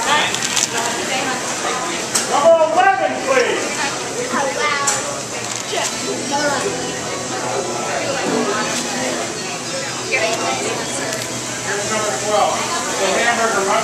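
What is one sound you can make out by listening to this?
Several people chatter nearby.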